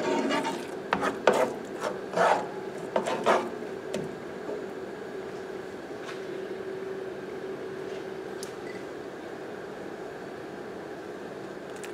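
Eggs sizzle steadily in a hot frying pan.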